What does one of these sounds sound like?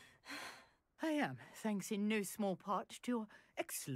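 An elderly woman answers warmly.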